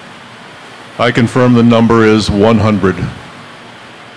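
An older man speaks loudly through a microphone.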